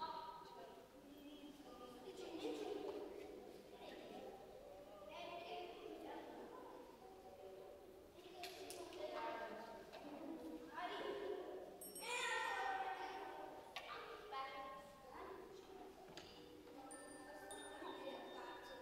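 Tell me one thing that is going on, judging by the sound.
Several instruments play an improvised piece together in a large echoing hall.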